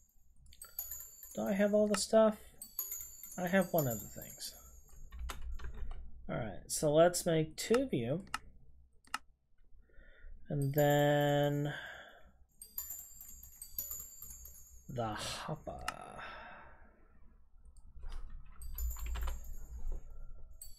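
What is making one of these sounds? Game menu buttons click softly, again and again.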